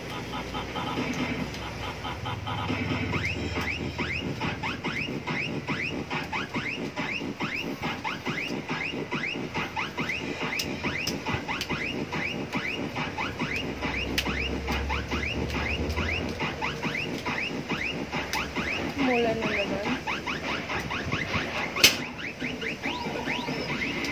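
A young girl's bare feet patter and stamp on a hard floor.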